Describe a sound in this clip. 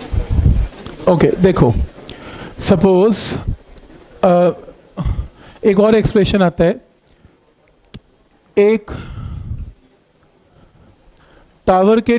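A man speaks calmly into a clip-on microphone.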